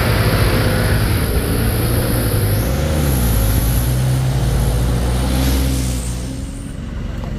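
A truck engine strains as it climbs past.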